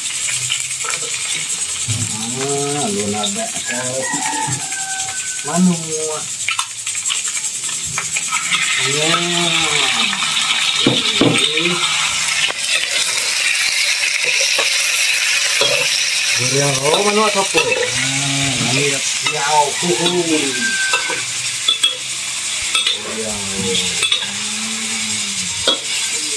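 Food sizzles in hot oil, growing louder partway through.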